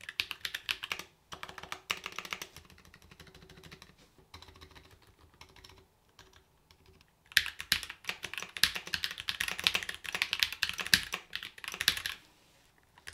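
Fingers type quickly on a clicky mechanical keyboard.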